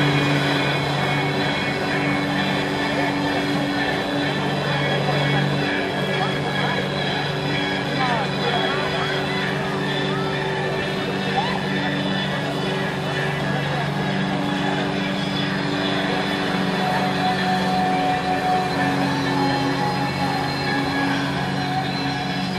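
Flyboard water jets roar and spray onto the water.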